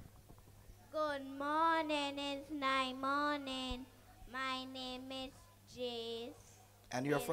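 A young child speaks haltingly into a microphone.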